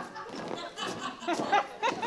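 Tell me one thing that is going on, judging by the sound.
An older man laughs loudly.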